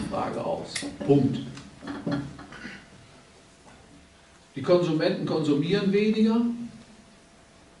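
An elderly man speaks with animation into a microphone, in short bursts with pauses.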